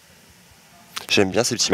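A man speaks loudly and with animation into a close microphone.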